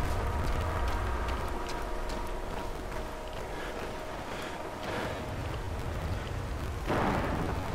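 A radiation counter crackles with irregular clicks.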